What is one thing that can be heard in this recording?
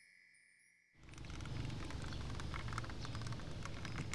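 Suitcase wheels roll over pavement.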